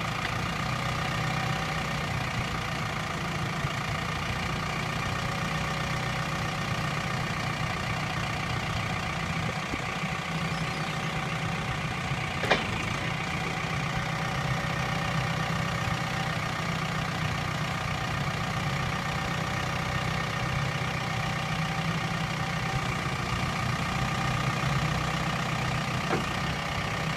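A forklift engine idles with a steady hum close by.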